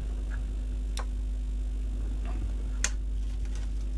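Small metal parts click and tap under a hand.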